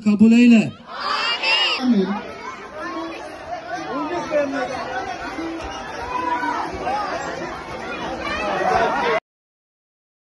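A crowd of children chatters and shouts close by.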